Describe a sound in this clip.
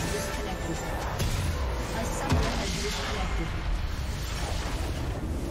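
Game sound effects crash and boom loudly in a fight.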